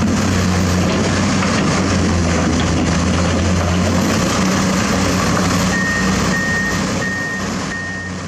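An excavator bucket scrapes through rock and dirt.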